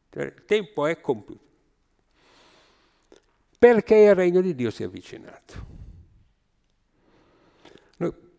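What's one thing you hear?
An elderly man speaks with animation into a microphone, with pauses.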